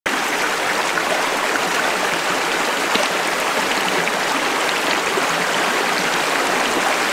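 A shallow stream ripples and splashes steadily over rocks.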